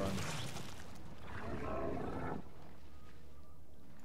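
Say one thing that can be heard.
A swarm of creatures skitters and chitters.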